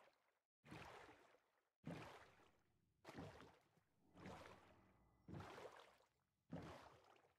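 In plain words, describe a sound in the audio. Water splashes in regular bursts as a swimmer strokes.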